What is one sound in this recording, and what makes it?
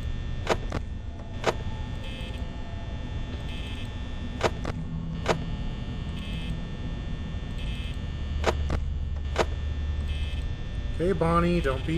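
An electric desk fan whirs with a low hum.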